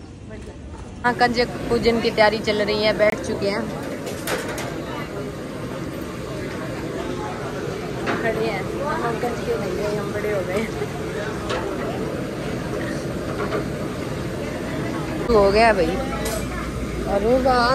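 A crowd of women and children chatter in the background.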